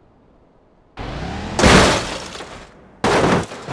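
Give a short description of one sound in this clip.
A car crashes hard onto rocky ground, crunching and scraping.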